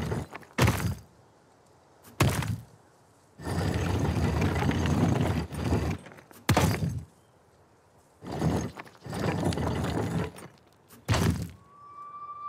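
A stone mechanism clicks into place with a sharp knock.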